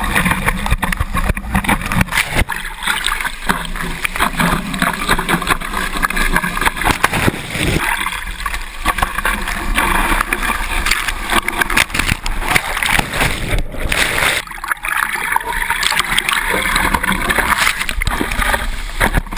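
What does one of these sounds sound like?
Water splashes and rushes past.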